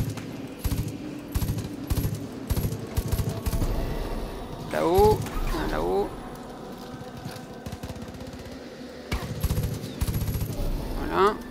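Rapid gunfire bursts out in quick sharp shots.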